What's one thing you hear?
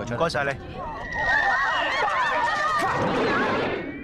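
A young man shouts and laughs loudly.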